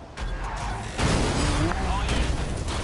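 A car crashes with a loud bang and shattering debris.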